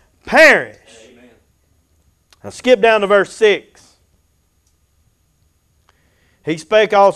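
An elderly man speaks slowly and earnestly into a microphone, with pauses between phrases.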